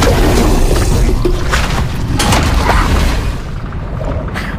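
A fiery explosion roars loudly.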